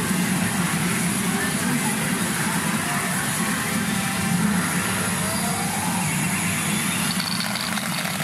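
A pachinko machine plays loud electronic music and chimes.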